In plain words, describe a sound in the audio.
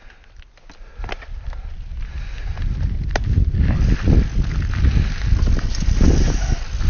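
Wind rumbles against the rider, growing stronger with speed.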